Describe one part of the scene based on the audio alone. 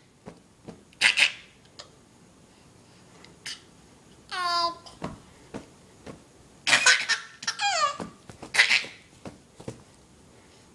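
A baby squeals and laughs loudly up close.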